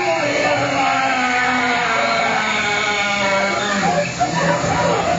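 A squeezebox plays sustained chords.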